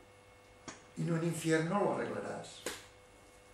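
A man speaks calmly in a quiet room.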